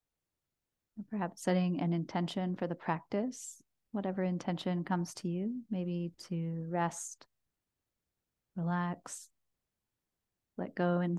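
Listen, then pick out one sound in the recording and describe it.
A woman speaks softly and calmly into a microphone.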